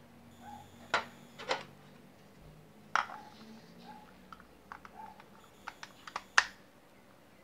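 Plastic parts click and tap together.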